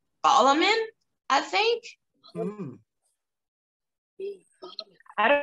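Several women talk with animation over an online call.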